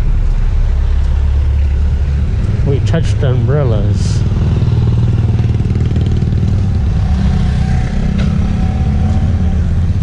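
A van engine rumbles as it drives slowly past nearby.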